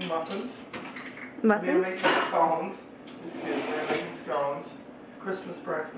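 Dishes clink and clatter as a dishwasher is loaded.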